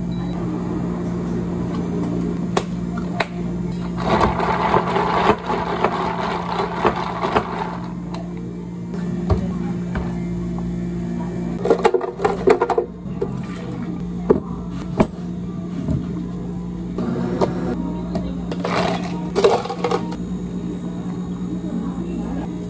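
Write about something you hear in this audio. Sparkling water pours and fizzes into a cup of ice.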